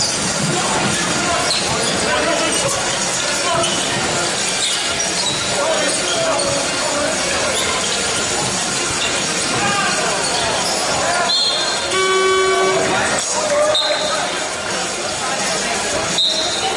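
A crowd murmurs and cheers in the echoing hall.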